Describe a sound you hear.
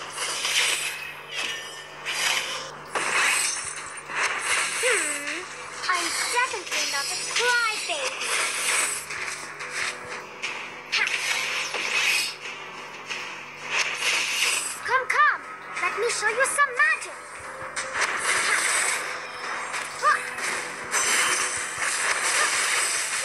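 Magic spell effects blast and whoosh in quick bursts.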